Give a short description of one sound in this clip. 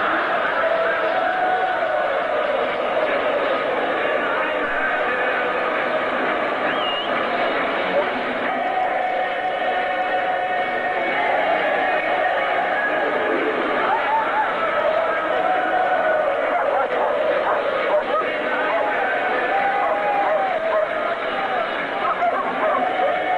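A large stadium crowd chants and shouts loudly in an open, echoing space.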